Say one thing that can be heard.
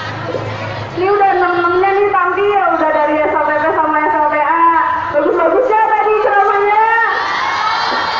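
A teenage girl speaks with animation through a microphone and loudspeaker.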